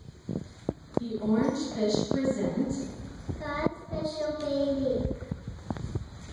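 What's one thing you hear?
A woman speaks into a microphone, heard through loudspeakers in a large echoing hall.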